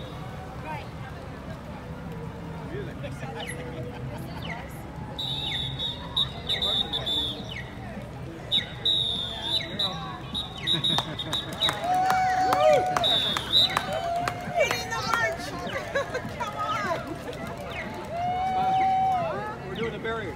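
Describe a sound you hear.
A crowd of people cheer and shout outdoors.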